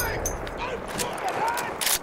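A machine gun fires bursts nearby.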